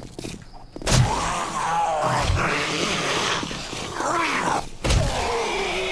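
A club strikes a body with heavy thuds.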